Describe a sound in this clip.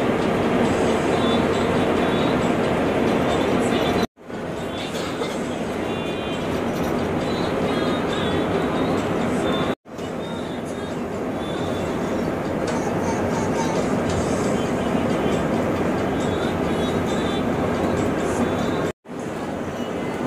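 Road noise rumbles steadily inside a moving vehicle.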